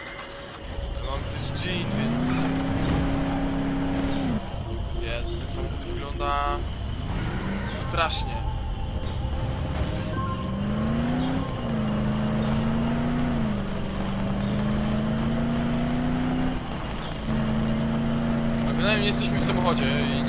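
A car engine revs up, then drones steadily.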